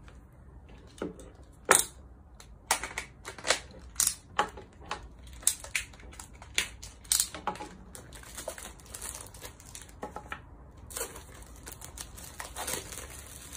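Plastic wrap crackles and tears as a small box is cut open with a knife.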